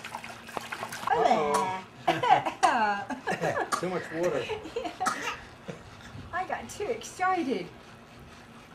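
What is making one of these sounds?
A woman talks playfully to a baby.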